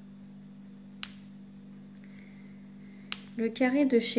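A plastic pen clicks against a plastic tray.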